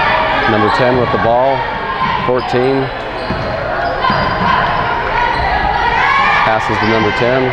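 Players and spectators shout and cheer in a large echoing gym.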